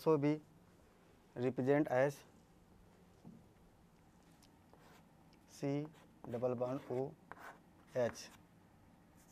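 A man speaks calmly in short phrases nearby.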